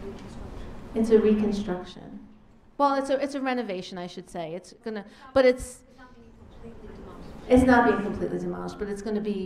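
A woman speaks calmly into a microphone, heard through loudspeakers in a large room.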